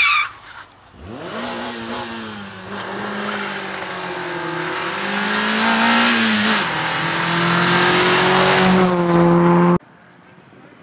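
A rally car engine roars closer, revving hard through the bends.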